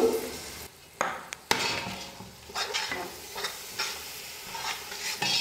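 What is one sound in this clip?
A metal ladle scrapes and stirs a thick sauce in a steel pot.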